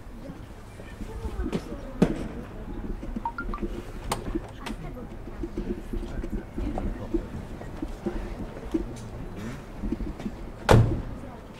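A crowd murmurs nearby outdoors.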